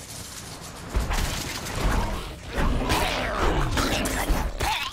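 Heavy blows thud against a monster in a fight.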